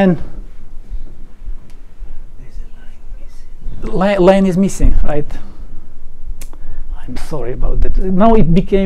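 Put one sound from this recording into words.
A man lectures calmly.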